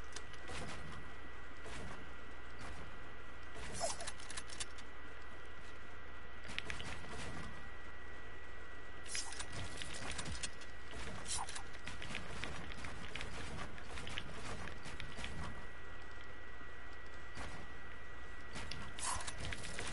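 Wooden building pieces clack into place in quick bursts.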